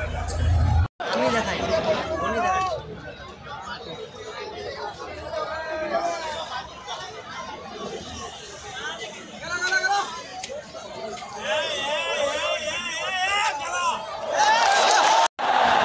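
A large stadium crowd cheers and chatters in a big open space.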